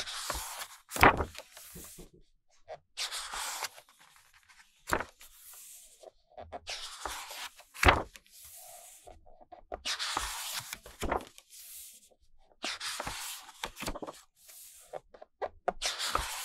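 Pages thump softly as they are pressed flat.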